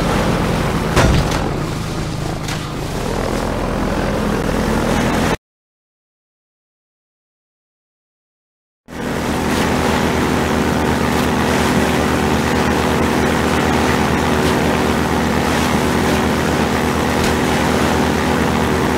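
Water splashes against a hull.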